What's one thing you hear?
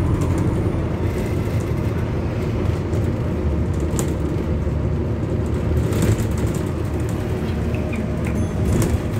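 A city bus drives along, its engine and road noise rumbling, heard from inside.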